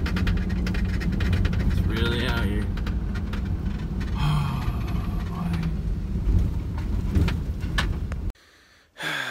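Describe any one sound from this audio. Gravel crunches under tyres.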